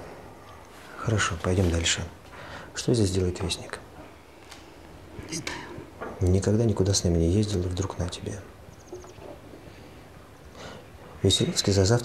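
A middle-aged man speaks quietly and seriously, close by.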